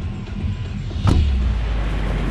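A sharp whoosh sounds as a figure jumps out.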